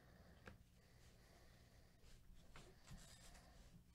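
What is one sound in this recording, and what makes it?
Trading cards slide and shuffle against each other.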